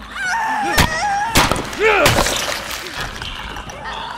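Heavy blows land with dull thuds.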